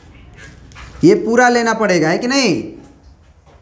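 A man speaks aloud in a clear, drawn-out voice, heard close by.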